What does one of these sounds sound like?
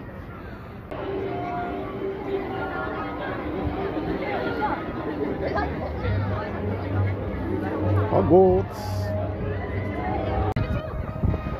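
A crowd of people chatters outdoors nearby.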